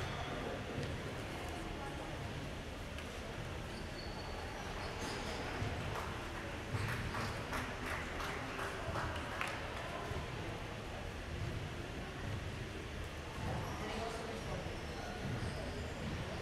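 Footsteps squeak on a hall floor.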